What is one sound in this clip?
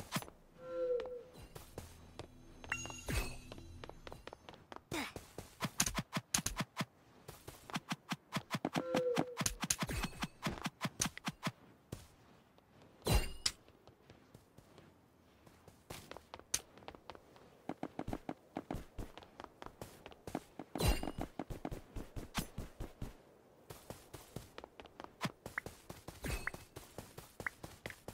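Video game sword hits land with sharp thwacks.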